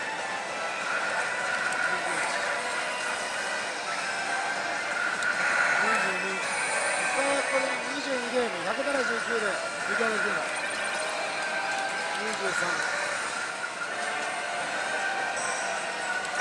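A slot machine plays loud electronic music and jingles.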